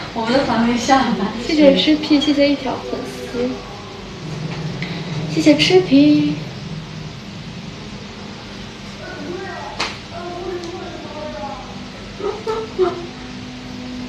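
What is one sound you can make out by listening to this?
A young woman talks chattily close to a microphone.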